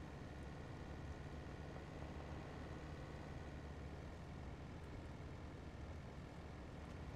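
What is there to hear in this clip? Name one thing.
A truck engine rumbles steadily while driving over rough ground.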